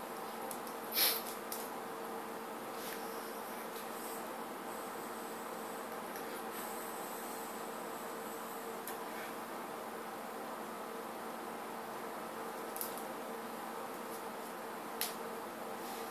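A small metal device clicks a few times close by.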